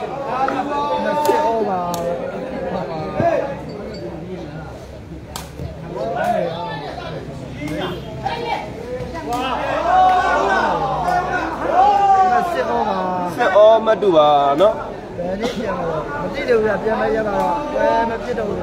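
A crowd of spectators shouts and cheers with excitement.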